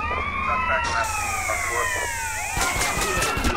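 A spray paint can hisses.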